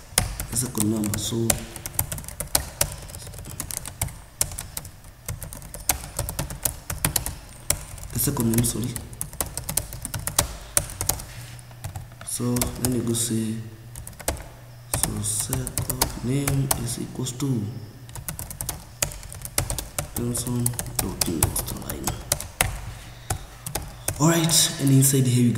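Keys clatter on a keyboard in quick bursts.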